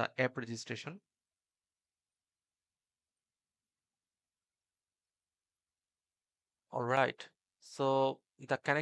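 A man talks calmly and close to a microphone, with long pauses.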